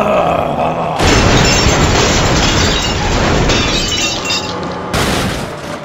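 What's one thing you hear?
A car crunches and scrapes loudly as a train crashes into it.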